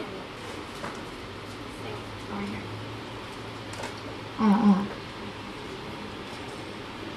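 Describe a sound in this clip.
A keyboard plays soft pitched notes.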